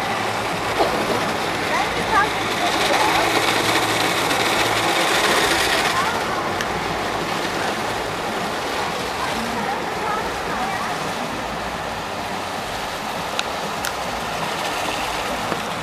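Water sprays and splashes.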